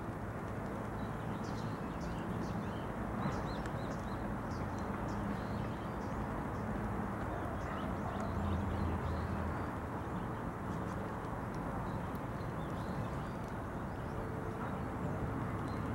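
A duck dabbles its bill in shallow muddy water with soft wet clicks.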